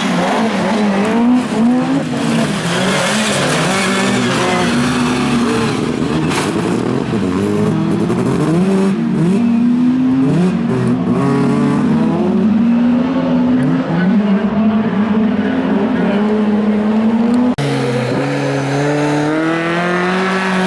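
Several racing car engines roar and rev hard nearby.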